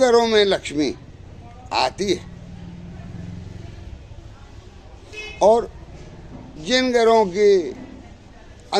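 An elderly man speaks slowly and calmly, close by, with pauses between phrases.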